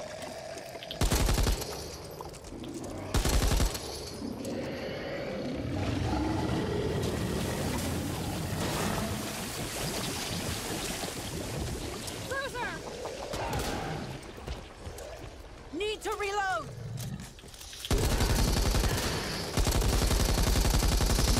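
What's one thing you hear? A machine gun fires loud, rapid bursts.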